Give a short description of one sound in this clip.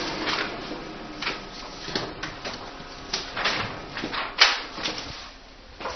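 Paper rustles and taps against a copier lid.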